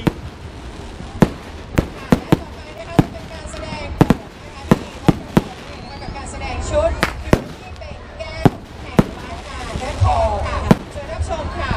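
Fireworks burst with sharp, loud bangs outdoors.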